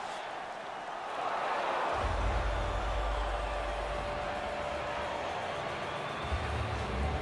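A large arena crowd murmurs and cheers.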